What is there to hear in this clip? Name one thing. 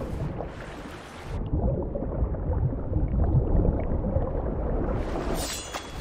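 Water splashes and churns as someone swims.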